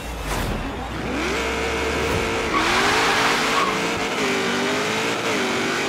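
A racing car engine revs hard and accelerates, shifting through gears.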